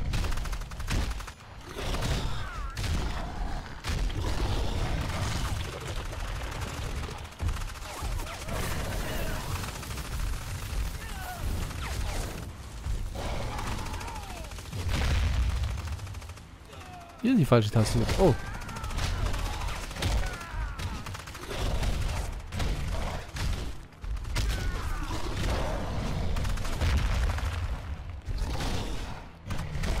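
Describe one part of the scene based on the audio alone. Heavy footsteps of a large creature thud on the ground.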